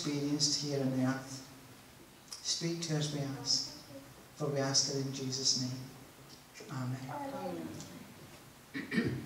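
An elderly man speaks calmly into a microphone, heard through loudspeakers in a large room.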